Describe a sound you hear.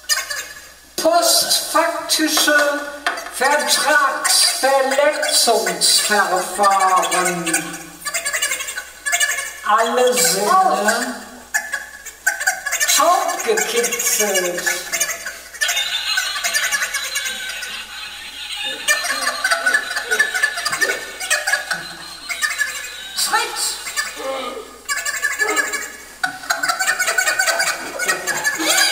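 A woman sings expressively close to a microphone.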